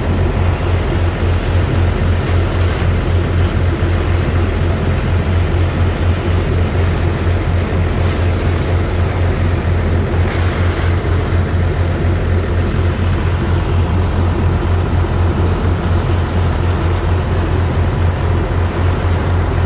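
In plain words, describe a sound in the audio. A strong jet of water gushes and splashes onto wet sand.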